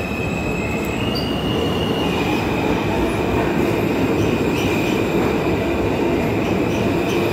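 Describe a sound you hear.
A subway train rushes past with a loud, steady rumble, echoing in an underground station.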